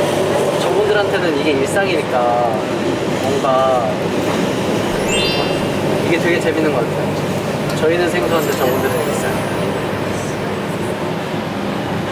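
A young man talks cheerfully nearby.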